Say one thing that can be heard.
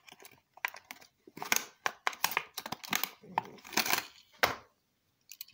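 Plastic packaging crinkles and rustles close by.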